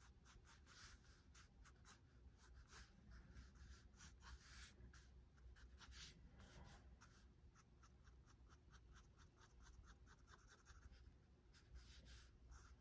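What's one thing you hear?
A pen scratches and scrapes across paper in quick strokes.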